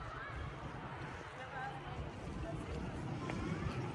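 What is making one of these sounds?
Distant voices of people murmur outdoors.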